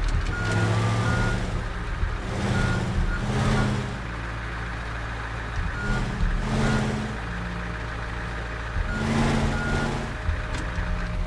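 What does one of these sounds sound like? A heavy truck engine rumbles and revs up again and again.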